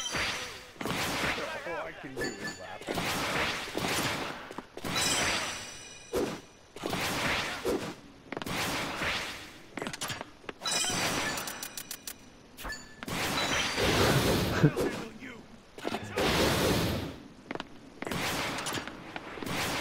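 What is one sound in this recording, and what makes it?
Electric blasts crackle and whoosh in short bursts.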